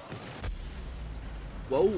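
A fiery explosion bursts and crackles.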